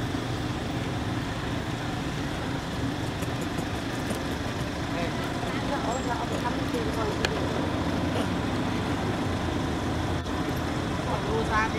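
A baby monkey squeaks in short, high cries close by.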